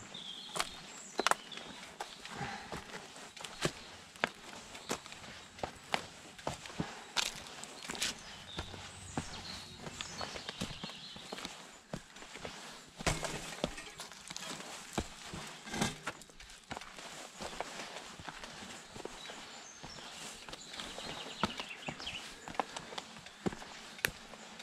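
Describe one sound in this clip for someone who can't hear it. Bicycle tyres crunch over a dirt trail.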